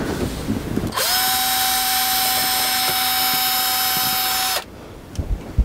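A cordless drill whirs steadily, then stops.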